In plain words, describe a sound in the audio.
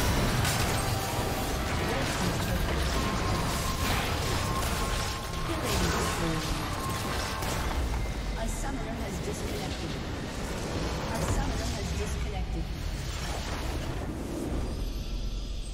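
Magic spells crackle and whoosh in a busy video game battle.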